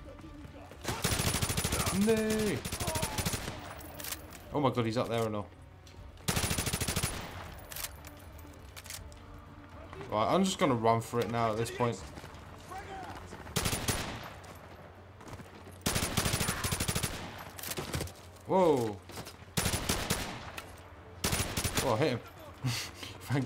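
Automatic rifle fire rattles in loud, rapid bursts.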